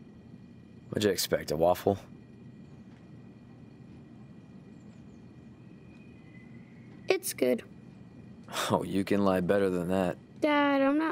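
A man speaks calmly and wryly, close by.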